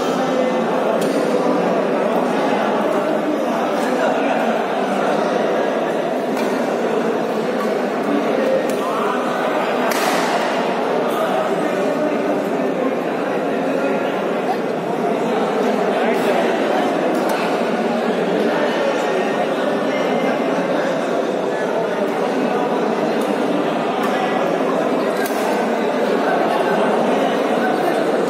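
Rackets strike a shuttlecock with sharp pops.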